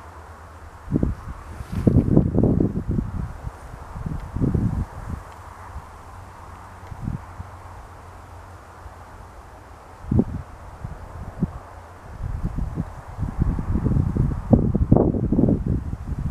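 Wind gusts rumble against the microphone outdoors.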